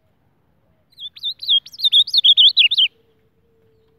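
An ultramarine grosbeak sings a warbling song.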